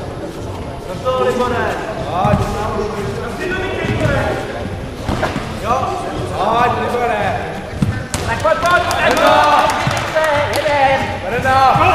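Young men shout sharply in a large echoing hall.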